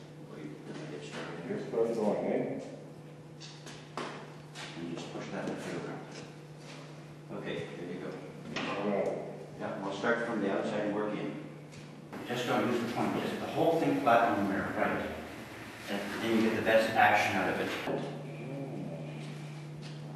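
Wet mops swish and scrub across a large glass surface.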